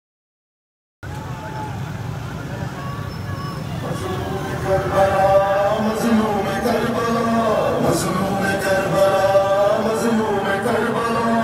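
Many motorcycle engines rumble as a large crowd rides past.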